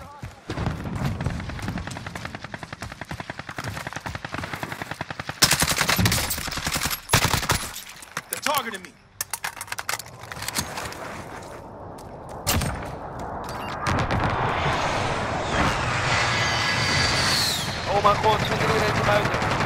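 Rapid gunshots crack in bursts.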